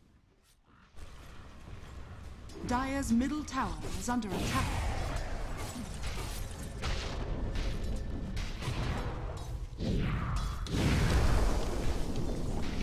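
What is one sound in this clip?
Game combat sounds crash, zap and whoosh in a busy fight.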